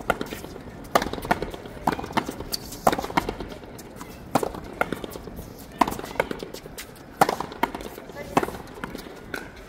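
Rackets strike a ball with sharp thwacks.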